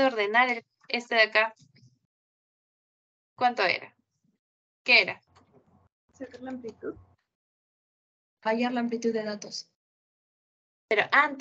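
A young woman speaks calmly through a microphone on an online call, with pauses.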